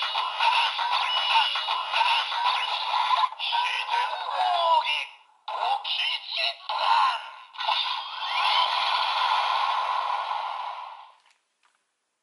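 A toy sword plays loud electronic sound effects and music.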